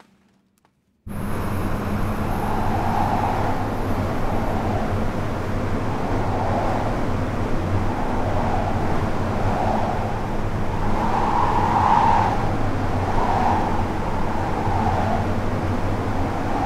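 A wind tunnel roars loudly and steadily.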